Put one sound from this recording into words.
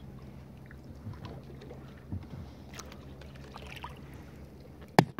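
A paddle dips and splashes softly in calm water.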